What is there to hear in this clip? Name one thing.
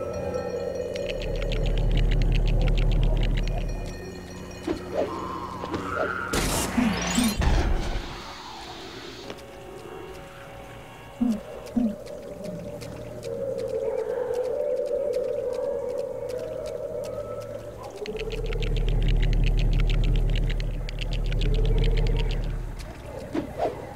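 A magical humming whoosh swells and fades as toy bricks float together.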